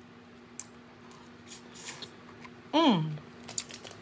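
A woman slurps and chews food close to a microphone.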